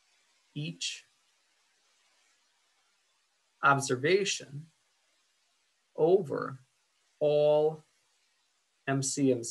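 A young man speaks calmly into a microphone in short phrases.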